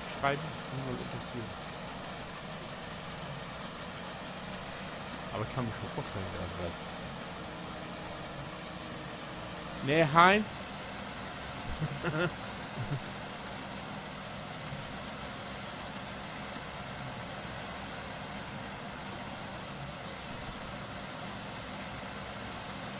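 A combine harvester's engine drones steadily.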